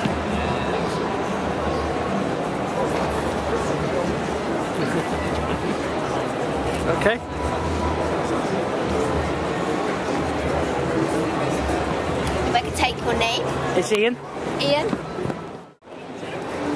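A crowd murmurs and chatters in a large, echoing hall.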